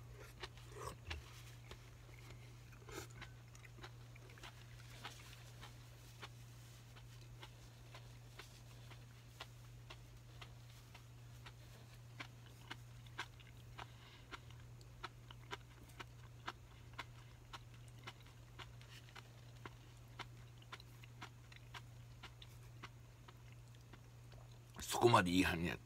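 Chopsticks click and scrape against a bowl.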